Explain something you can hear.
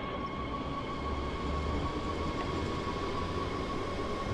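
A train's wheels rumble over the rails.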